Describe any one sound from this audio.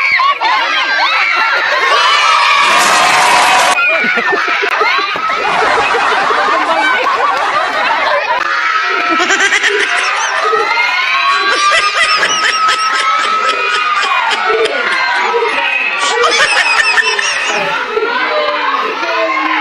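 Children shout and laugh excitedly outdoors.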